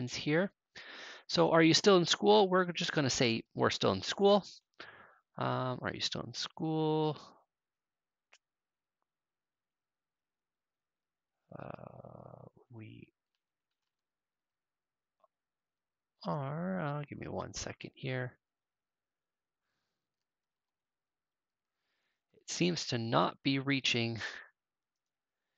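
A young man talks calmly into a close microphone, in bursts with pauses.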